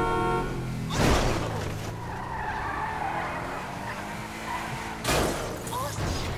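A car crashes with a loud metal bang.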